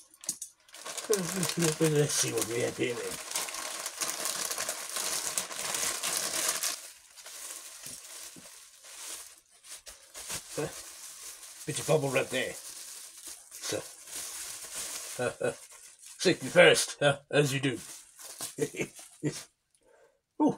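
Plastic packaging crinkles and rustles in a man's hands.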